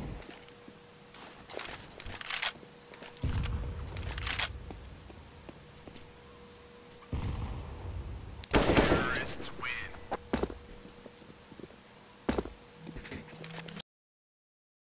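Metal weapon parts click and clatter as guns are handled.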